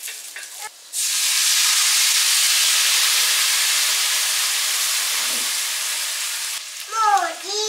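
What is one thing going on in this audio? Sauce sizzles loudly in a hot frying pan.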